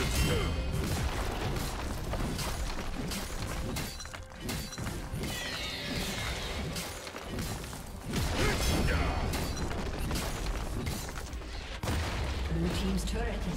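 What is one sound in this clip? Magic blasts and weapon strikes clash in a fast video game battle.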